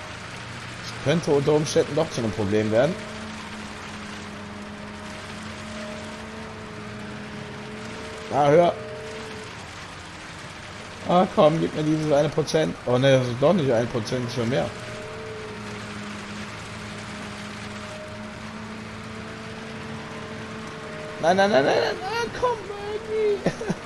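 A concrete pump's engine hums.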